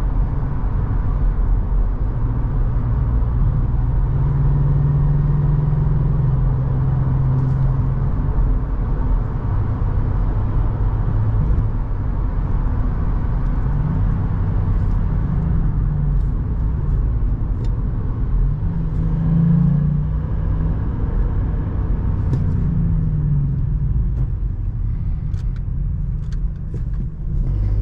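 Tyres roar on the road surface at speed.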